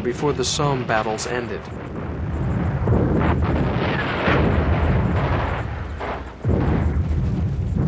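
Shells explode in the distance with deep rumbling booms.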